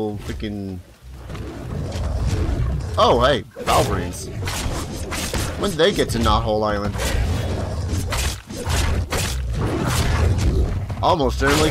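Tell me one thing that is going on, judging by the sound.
Magic blasts crackle and burst during a fight.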